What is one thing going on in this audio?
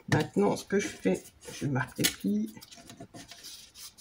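Paper crinkles and rustles as hands fold it.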